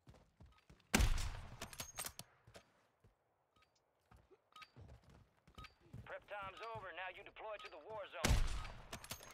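A rifle fires two loud, sharp shots that echo briefly.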